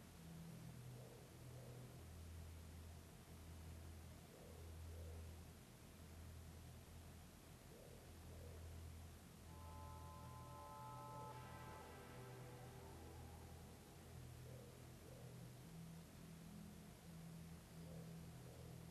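A car engine idles steadily.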